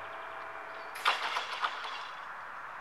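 Crossing barriers come down and settle with a rattling clunk.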